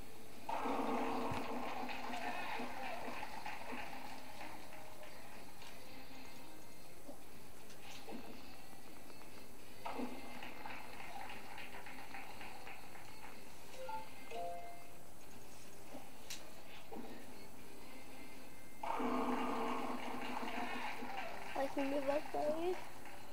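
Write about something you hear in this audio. Bowling pins crash and clatter through a television speaker.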